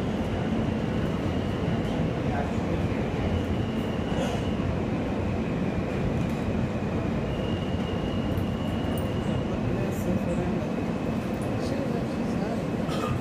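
Steel wheels squeal faintly on the rails.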